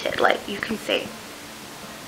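A young woman speaks briefly and casually close to a microphone.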